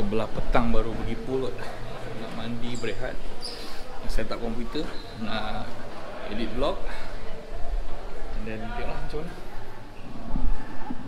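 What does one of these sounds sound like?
A young man talks close up, with animation.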